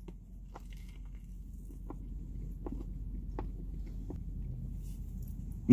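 A man chews food with soft smacking sounds close by.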